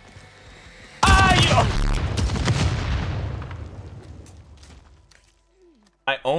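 A loud explosion bursts and slowly rumbles away.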